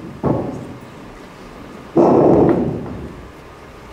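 A young performer speaks loudly in a large hall.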